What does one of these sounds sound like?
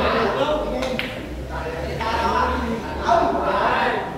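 Pool balls clack together and roll across a table.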